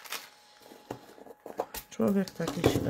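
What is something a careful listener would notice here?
A plastic jar lid clicks and taps against a wooden table.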